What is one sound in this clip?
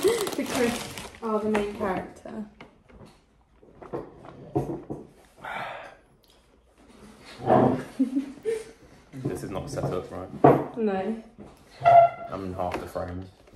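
A young man talks close by, with animation.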